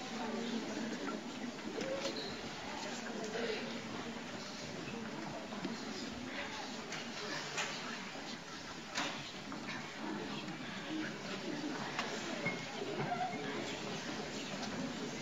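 A choir of young girls sings together.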